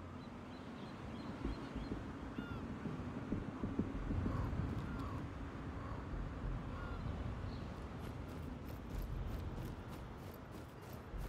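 Footsteps crunch steadily through snow.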